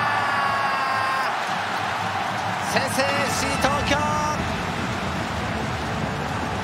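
A large crowd roars and cheers in a big stadium.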